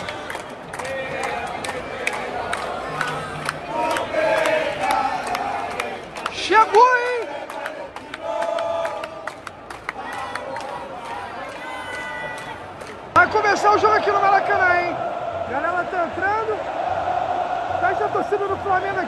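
A large crowd of fans sings and chants loudly in a big open stadium.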